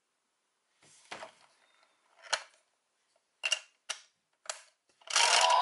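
Plastic pieces click and clack as a toy disc is fitted into place.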